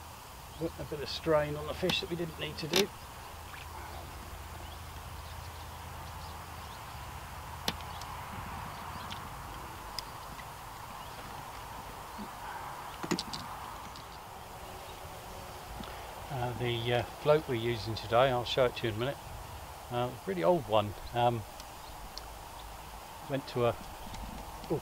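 An elderly man talks calmly nearby, outdoors.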